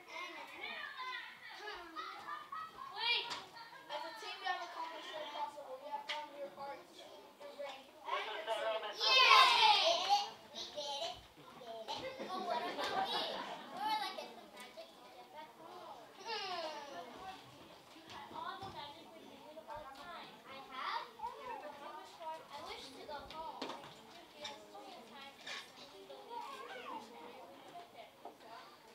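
Children speak in a large, echoing hall.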